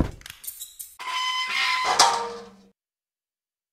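A heavy iron gate creaks open.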